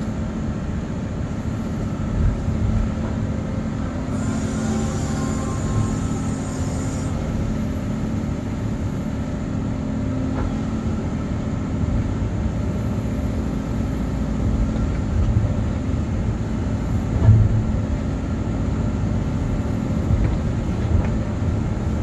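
Hydraulics whine as an excavator arm moves.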